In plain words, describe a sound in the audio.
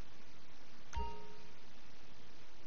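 A short electronic chime rings out once.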